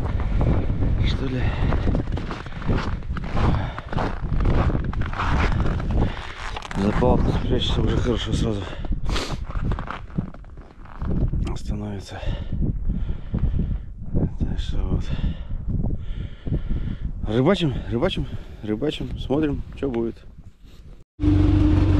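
A middle-aged man talks into a close microphone with animation.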